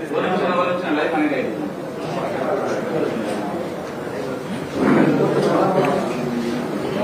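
A middle-aged man speaks steadily into microphones.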